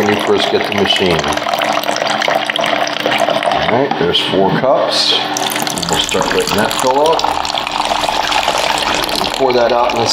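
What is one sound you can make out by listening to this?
A thin stream of water trickles into a plastic cup.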